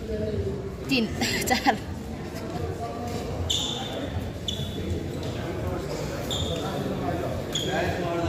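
People chatter in the background of a large echoing hall.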